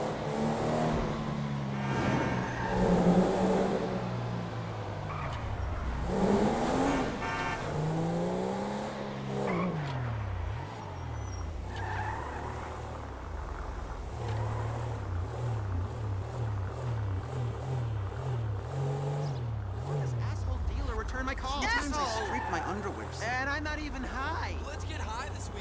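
A car engine revs up and down as it accelerates and shifts gears.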